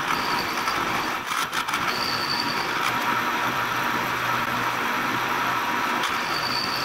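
A milling cutter grinds steadily through metal with a high whine.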